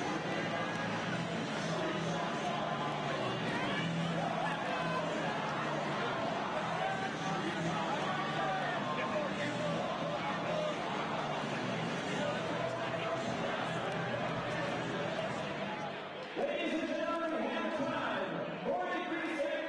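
A man announces loudly through a loudspeaker in a large echoing hall.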